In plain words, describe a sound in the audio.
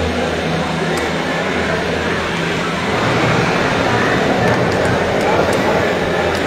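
A crowd of adults chatters in a large hall.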